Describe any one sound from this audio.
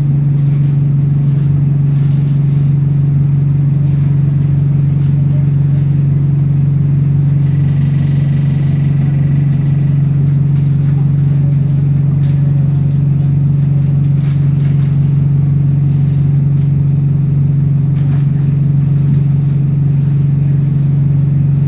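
Rattles and knocks sound from inside a moving bus.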